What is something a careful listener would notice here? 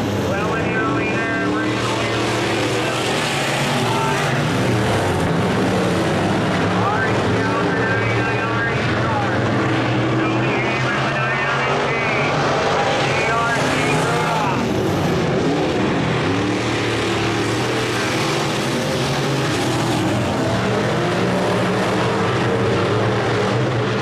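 Engines rev up and down as cars slide through the turns.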